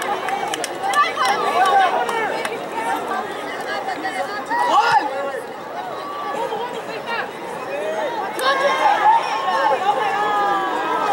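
A crowd of spectators cheers and calls out from the stands.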